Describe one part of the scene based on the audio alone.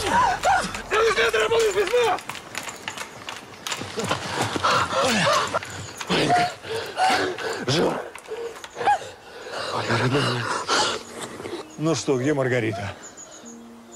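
A man shouts and cries out in distress nearby.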